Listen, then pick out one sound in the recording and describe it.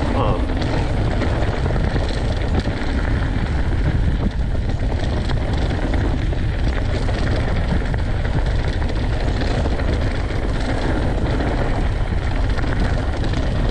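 Bicycle tyres crunch and rattle over loose gravel.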